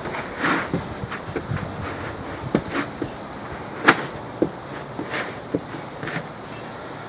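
Boots step and stamp on a rubber mat.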